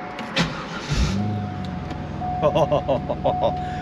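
A car engine cranks and starts, then idles.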